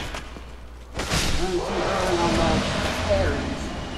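A burst of magic crackles and roars loudly.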